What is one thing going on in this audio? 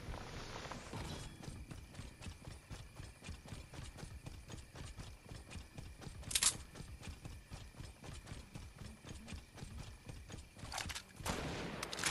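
Quick footsteps run over grass.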